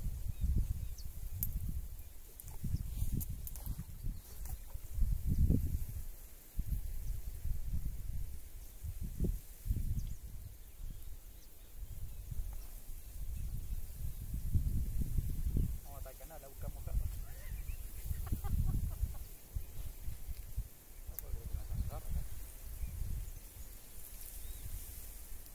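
Wind gusts and rumbles against the microphone outdoors.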